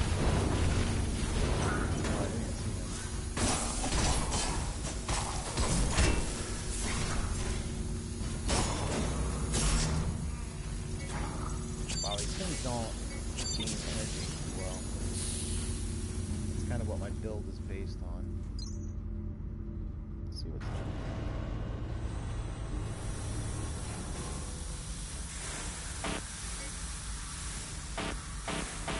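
A deep mechanical hum drones steadily.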